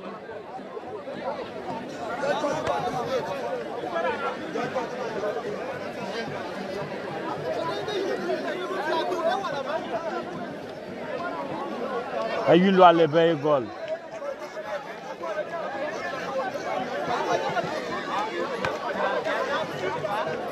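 Several men talk and shout nearby.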